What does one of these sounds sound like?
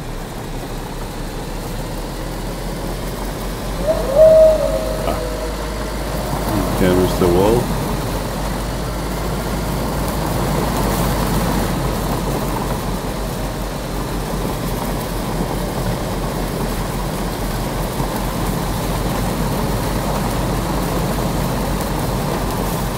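A car engine hums steadily as it drives over rough ground.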